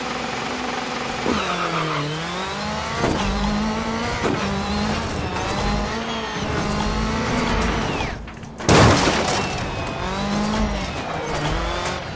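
A racing car engine revs hard, rising and dropping in pitch as it shifts gears.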